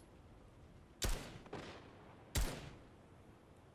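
Two loud gunshots ring out, each with a short echo.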